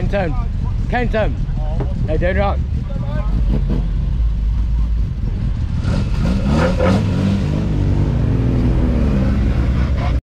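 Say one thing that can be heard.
A car engine revs in sharp bursts close by.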